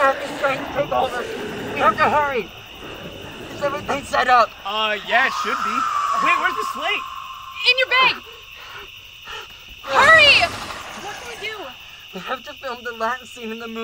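A young woman talks anxiously nearby.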